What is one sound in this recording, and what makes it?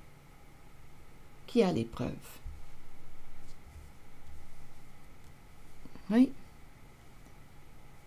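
Cards slide across a table.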